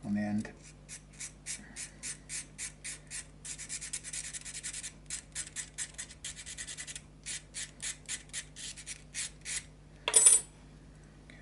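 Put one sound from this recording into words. Small metal parts click rapidly under busy fingers.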